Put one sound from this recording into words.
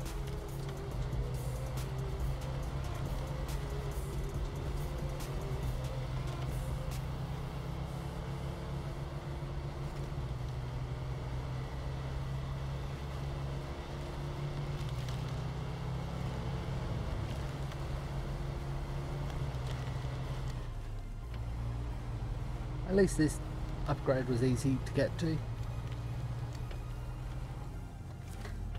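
A truck engine rumbles steadily as it climbs over rough ground.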